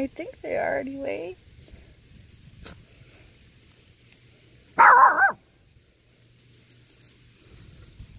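Leaves and grass rustle softly as a hand picks small berries.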